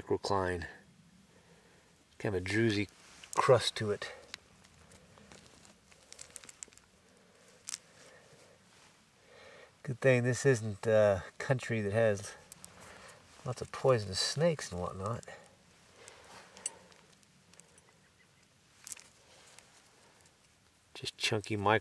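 An older man talks calmly, close by.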